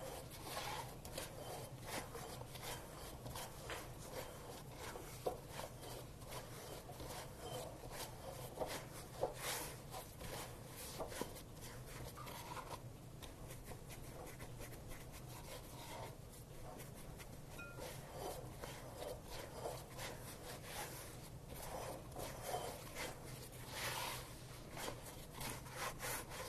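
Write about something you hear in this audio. Hands knead soft dough in a bowl.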